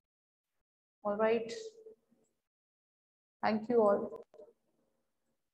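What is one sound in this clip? A woman speaks calmly into a close microphone, in short phrases.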